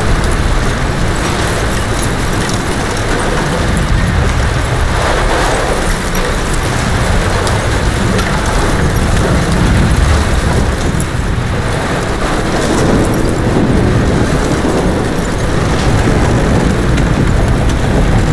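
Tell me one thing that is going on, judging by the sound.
A heavy bell swings and clangs.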